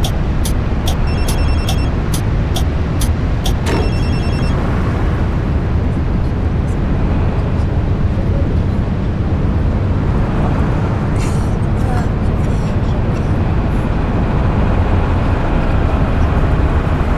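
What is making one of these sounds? A bus engine hums low and steady.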